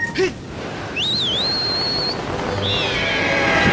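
Wind rushes loudly past a falling figure.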